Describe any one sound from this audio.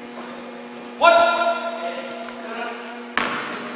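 Young men call out loudly in an echoing hall.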